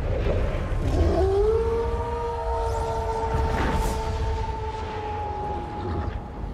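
A wolf howls long and steadily, then fades.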